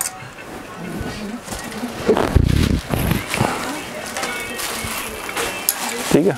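Fabric rustles as dresses on hangers are handled.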